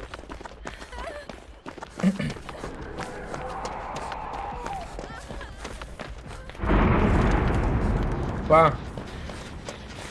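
Footsteps rustle quickly through tall grass.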